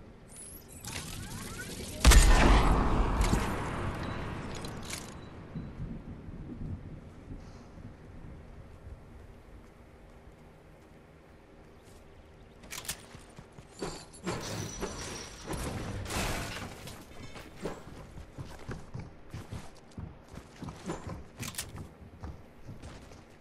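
A game character's footsteps patter as she runs.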